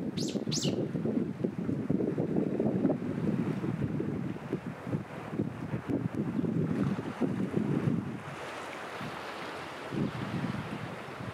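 Small waves lap gently against rocks at the shore.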